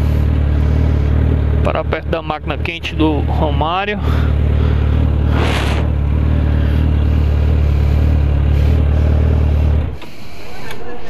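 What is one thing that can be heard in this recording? A motorcycle engine idles close by with a low, steady rumble.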